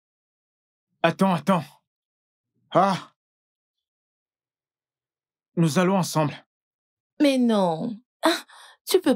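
A woman speaks loudly and with animation close by.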